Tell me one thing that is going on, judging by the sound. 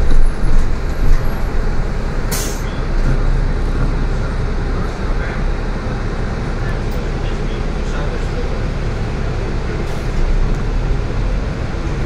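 A bus engine rumbles steadily from inside the vehicle.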